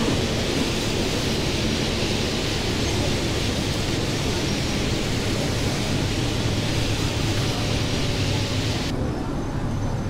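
A bus engine hums and rumbles steadily as the bus drives.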